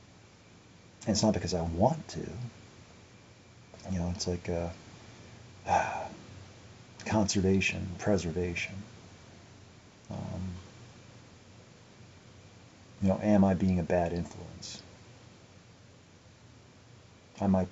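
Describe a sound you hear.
A young man speaks calmly and close to the microphone, in short bursts with pauses.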